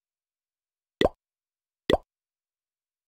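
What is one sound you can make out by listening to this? A game button clicks twice, sharply.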